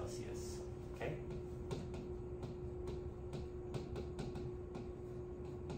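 Fingers tap lightly on a hard board.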